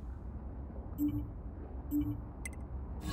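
Menu selection blips sound softly.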